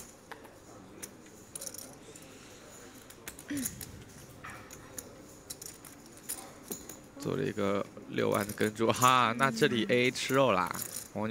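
Poker chips click and clack together on a table.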